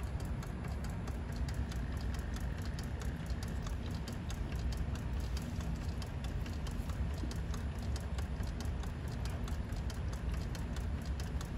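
A pump machine ticks rapidly and evenly.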